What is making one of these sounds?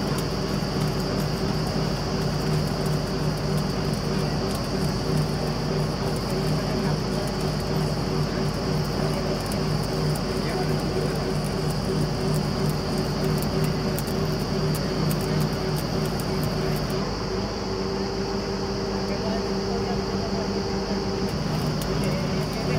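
A drilling rig's engine roars steadily close by.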